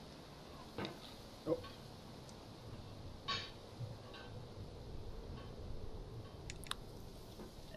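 A metal hammer clanks and scrapes against rock.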